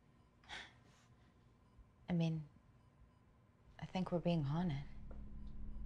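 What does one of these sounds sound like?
A young woman speaks in a tense, quiet voice.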